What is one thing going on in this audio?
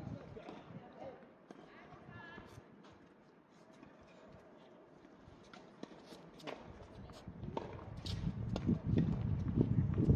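Tennis rackets strike a ball back and forth with sharp pops.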